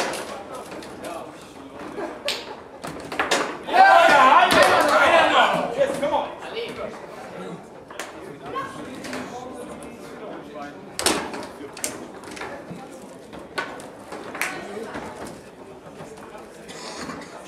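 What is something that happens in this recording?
Foosball rods clack and the ball knocks sharply against the table.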